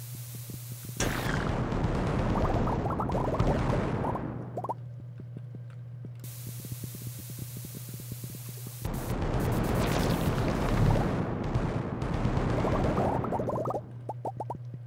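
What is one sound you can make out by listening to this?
Bombs explode with a loud, crackling rumble.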